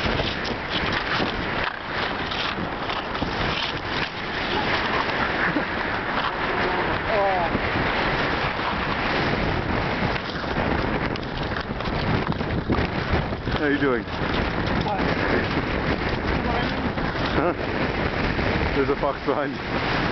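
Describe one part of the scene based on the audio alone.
Wind rushes loudly past the microphone outdoors.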